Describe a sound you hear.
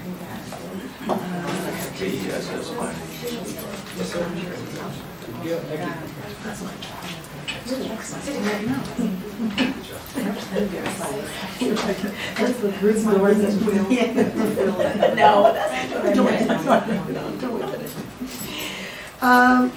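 Several adults talk in turn.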